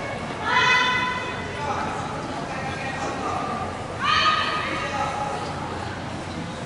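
Young women let out loud, sharp shouts in a large echoing hall.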